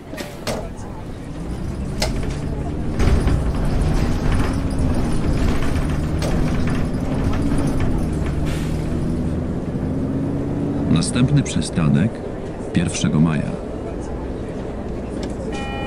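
A bus engine rumbles and revs up as the bus pulls away.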